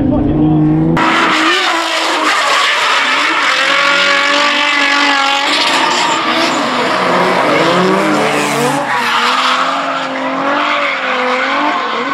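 Tyres screech on the track.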